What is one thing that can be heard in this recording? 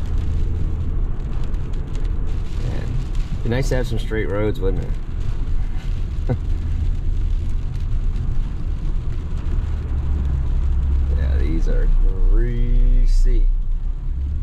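A car engine hums and tyres rumble steadily on a wet road.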